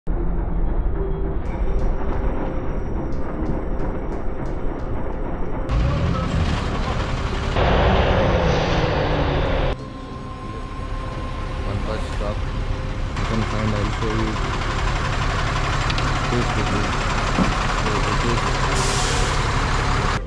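A heavy truck engine rumbles close by.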